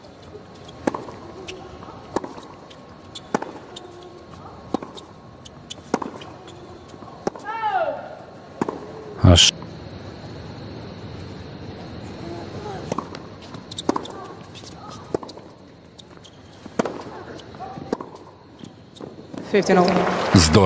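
A tennis ball is struck back and forth with sharp, hollow pops.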